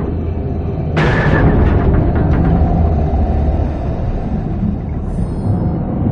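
Metal clanks and debris crashes as a hatch is forced open.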